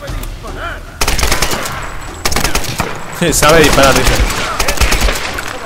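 A rifle fires several sharp shots.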